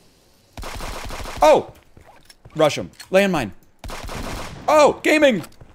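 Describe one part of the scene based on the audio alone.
Gunfire blasts in rapid bursts.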